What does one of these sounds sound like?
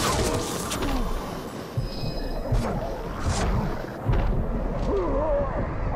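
A ghoul-like creature snarls and growls.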